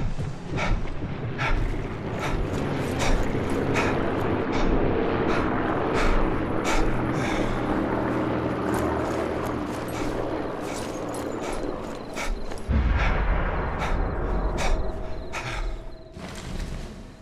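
Footsteps crunch quickly through dry grass.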